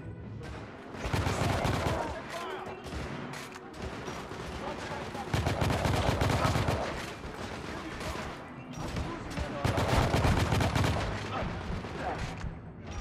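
A rifle fires in rapid bursts of loud shots.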